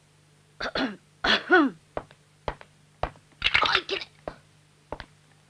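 A boy speaks with surprise, close by.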